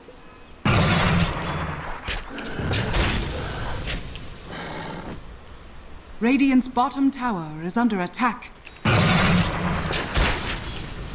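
Magic spells whoosh and crackle amid clashing blows in a fight.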